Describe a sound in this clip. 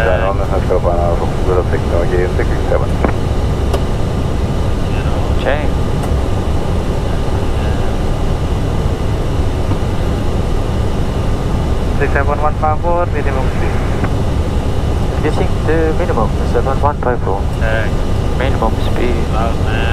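A steady low engine roar fills the cockpit.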